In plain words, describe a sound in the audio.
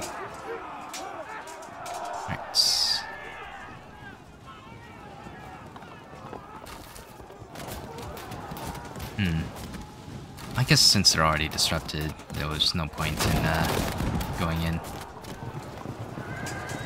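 Distant battle noise of clashing troops and clanging weapons rumbles on.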